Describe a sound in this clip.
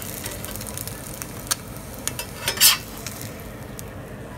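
Oil sizzles and crackles in a hot pan.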